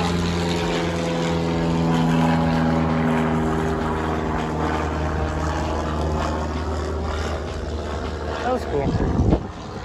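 A small propeller plane drones overhead and slowly fades.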